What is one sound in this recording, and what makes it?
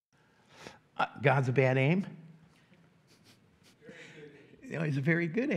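An older man speaks with animation into a microphone.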